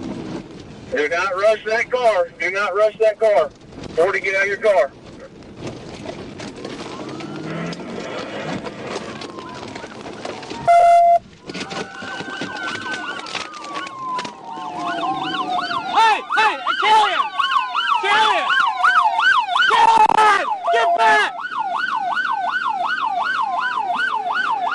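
A police siren wails and yelps close by.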